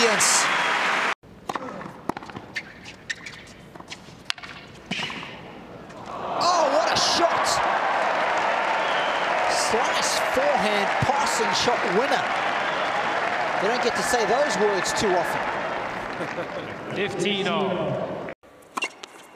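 A crowd cheers and applauds loudly in a large arena.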